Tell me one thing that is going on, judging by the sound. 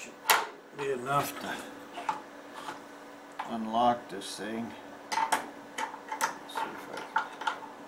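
A metal wrench clinks and scrapes against metal bolts.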